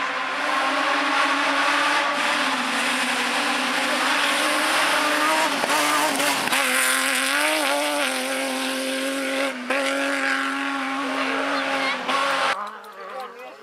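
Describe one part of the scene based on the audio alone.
Gravel sprays and crunches under a car's tyres.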